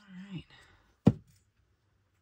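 A plastic bottle is set down on a table with a knock.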